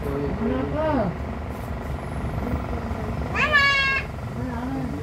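A young girl speaks and squeals close by.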